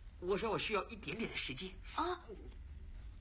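A man whispers close by.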